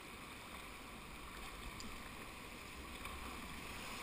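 A paddle splashes in the water.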